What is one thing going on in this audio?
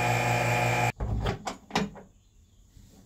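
A metal oven door clanks open.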